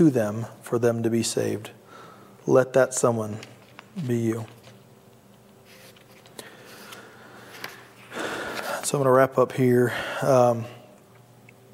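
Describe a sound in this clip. A man speaks calmly into a microphone, heard in a room with echo.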